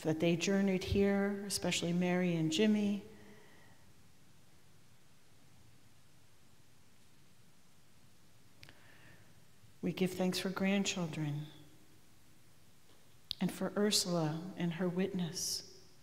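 A middle-aged woman speaks slowly and calmly into a microphone, in a room with a slight echo.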